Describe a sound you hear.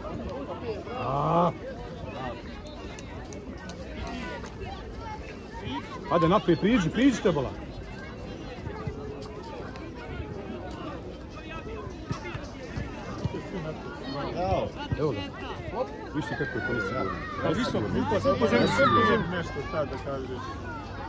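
Children shout and call out across an open outdoor field.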